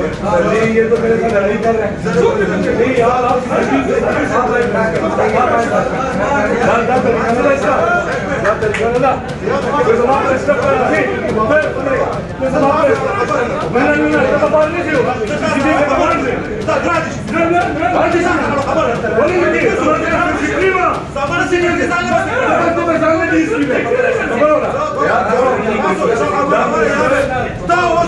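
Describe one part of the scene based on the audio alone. Several men argue loudly and talk over one another close by.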